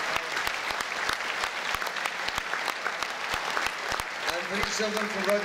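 An audience claps steadily.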